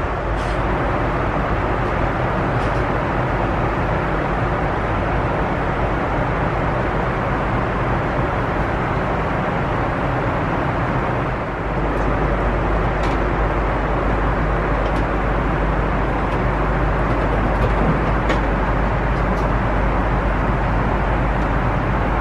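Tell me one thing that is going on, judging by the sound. The cabin of a Boeing 747 roars steadily in flight.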